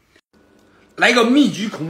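A young man speaks loudly close to a microphone.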